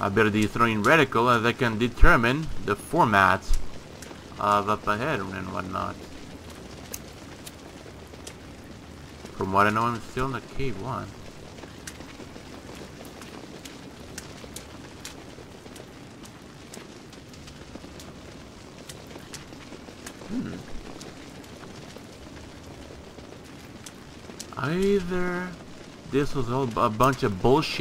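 A torch flame crackles and flickers softly.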